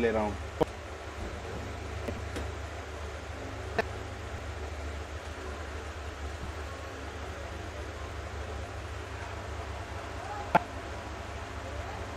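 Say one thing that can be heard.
A metal ruler taps against a table.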